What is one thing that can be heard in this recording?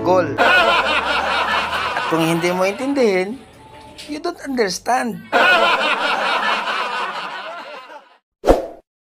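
A woman speaks with exaggerated animation close by.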